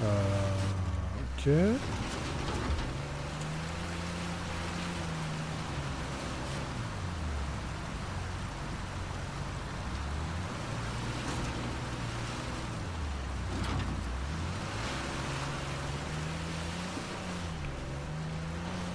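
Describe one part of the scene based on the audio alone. Water splashes and churns around car tyres.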